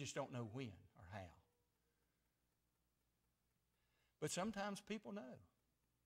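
A middle-aged man speaks steadily through a microphone, pausing between phrases.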